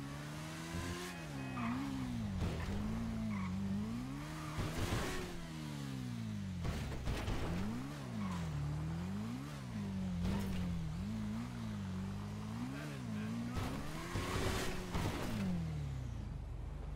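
A motorcycle engine revs up and down repeatedly, rising and falling in pitch.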